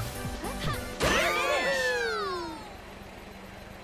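A cheerful game fanfare plays with sliding, whooshing tones.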